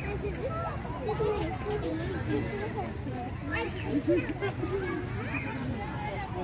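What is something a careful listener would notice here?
A young woman and other young people chatter nearby outdoors.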